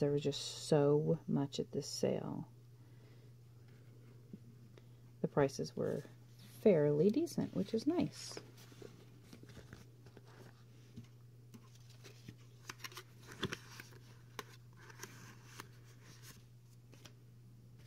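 Sticker sheets rustle and crinkle as they are handled.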